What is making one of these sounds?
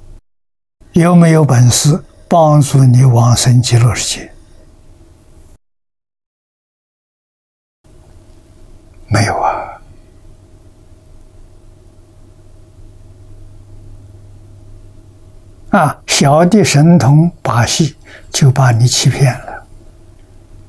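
An elderly man speaks calmly and warmly into a microphone, in short phrases with pauses.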